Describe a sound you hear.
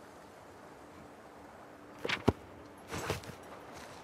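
A book snaps shut.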